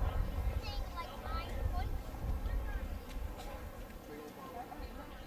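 A propeller plane drones steadily overhead in the distance, slowly fading.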